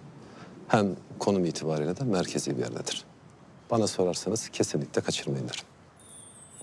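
A man speaks calmly and persuasively.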